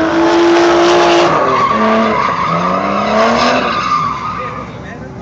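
A car engine revs loudly and rises and falls in pitch.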